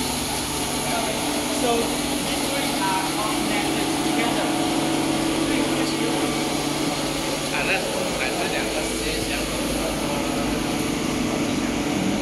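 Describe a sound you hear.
Machines hum steadily nearby.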